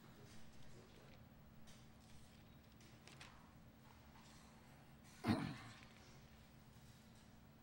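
Pages rustle as an elderly man turns them.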